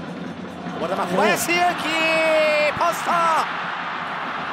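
A stadium crowd roars loudly as a shot goes at goal.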